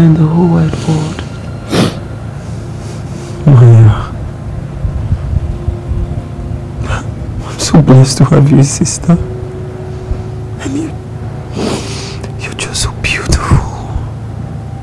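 A man speaks softly and emotionally, close by.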